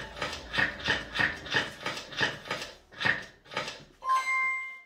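A slot machine clicks in a quick, steady rhythm as its symbols flip.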